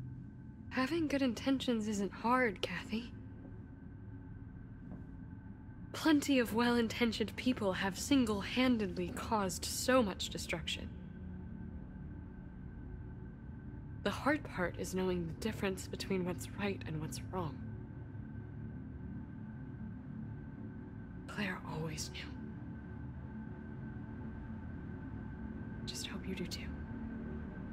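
A woman speaks calmly and firmly, close by.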